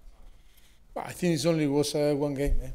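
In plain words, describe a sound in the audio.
A man speaks calmly and close into a microphone.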